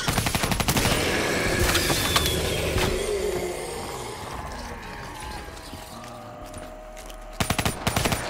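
A rapid-fire gun shoots in quick bursts.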